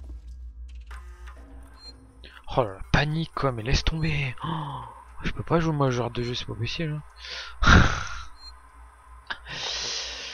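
A computer terminal hums as it starts up.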